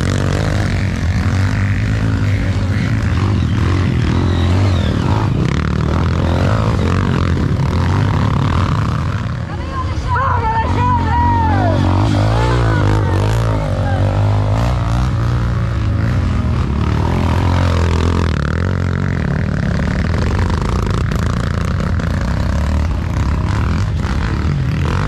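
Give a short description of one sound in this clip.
Dirt bike engines rev loudly and roar.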